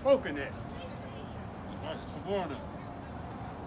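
A man speaks loudly in short bursts nearby, outdoors.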